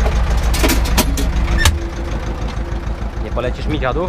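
A metal cab door clanks open.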